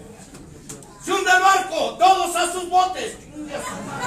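A woman shouts loudly nearby in a small echoing room.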